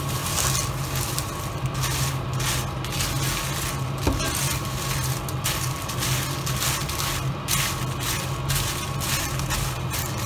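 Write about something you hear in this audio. Dried chillies rustle and crackle as a wooden spatula stirs them in a pan.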